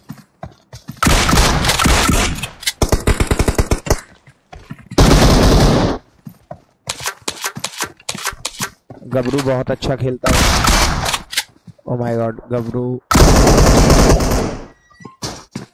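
Gunfire bursts in rapid loud volleys.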